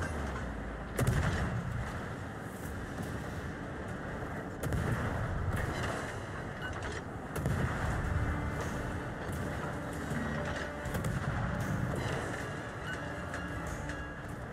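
Big naval guns fire with loud booming blasts.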